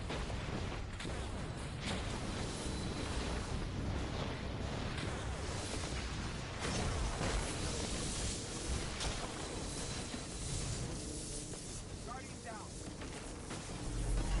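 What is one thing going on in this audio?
Energy beams crackle and hum.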